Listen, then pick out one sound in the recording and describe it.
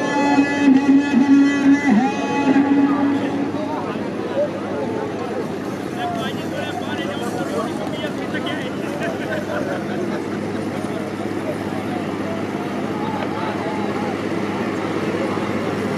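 A large outdoor crowd murmurs and shouts in the distance.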